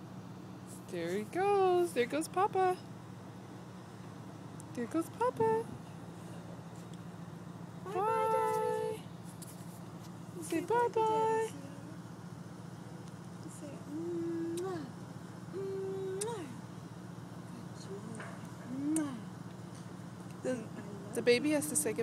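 A young woman talks close by in a high, animated, sing-song voice.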